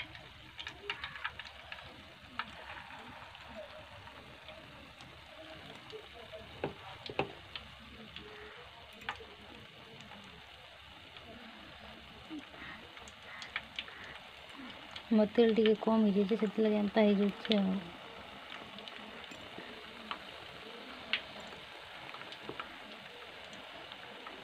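Oil sizzles and crackles steadily in a frying pan.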